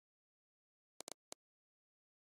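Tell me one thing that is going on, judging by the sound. Soft menu clicks tick twice.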